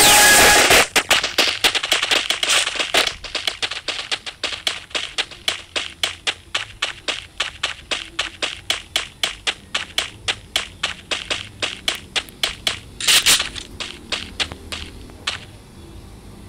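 Footsteps run quickly and evenly over hard ground.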